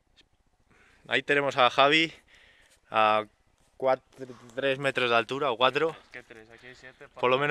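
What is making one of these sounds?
A young man talks nearby outdoors.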